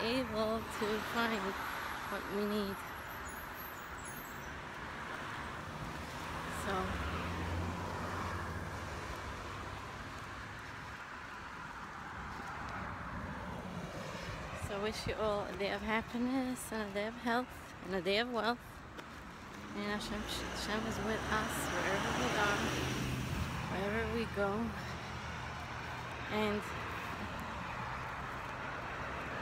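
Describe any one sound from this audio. A young woman talks calmly and cheerfully close to a phone's microphone.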